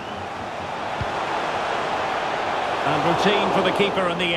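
A stadium crowd cheers louder as the noise swells.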